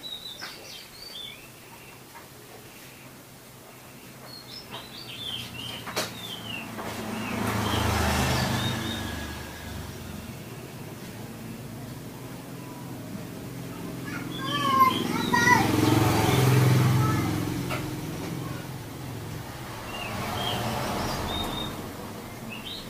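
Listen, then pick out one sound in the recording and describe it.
A songbird sings a varied, whistling song nearby.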